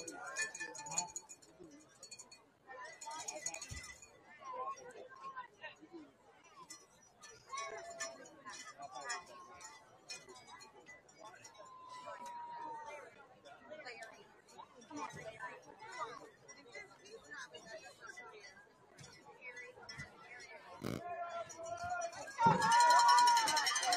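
Young men shout on the sideline.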